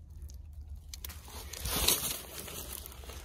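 A gloved hand scrapes against a rock.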